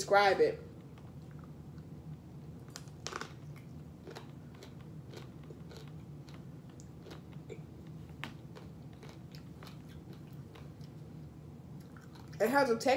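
A woman chews and slurps juicy fruit.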